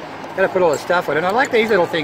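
Ice clinks in a metal cup.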